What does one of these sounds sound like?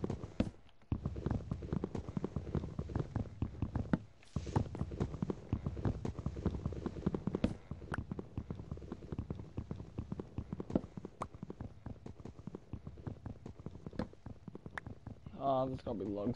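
Rapid soft tapping and crunching of blocks being broken.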